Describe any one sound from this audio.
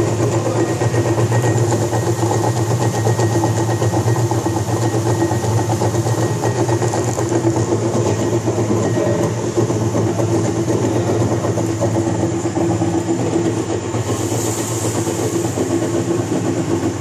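A machine shreds material with a loud, steady grinding roar.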